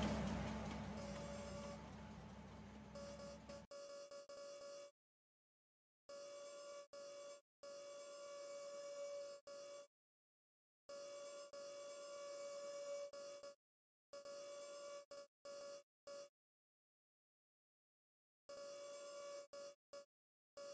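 An electric crane motor hums in short bursts, stopping and starting.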